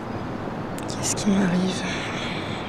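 A woman sighs close by.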